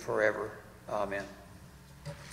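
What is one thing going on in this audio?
A man speaks briefly into a microphone in an echoing hall.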